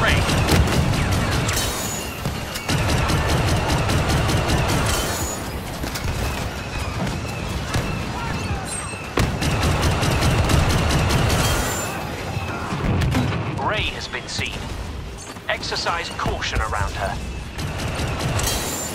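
Blaster rifles fire in rapid bursts of sharp zaps.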